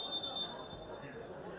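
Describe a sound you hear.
A referee's whistle blows a short shrill blast.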